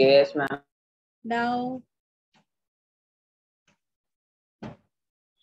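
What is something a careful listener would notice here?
A young girl speaks briefly through an online call.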